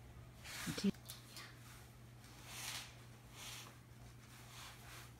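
Heavy fabric rustles close by as a person moves.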